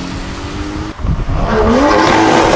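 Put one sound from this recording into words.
A car engine roars as it speeds past on a wet road.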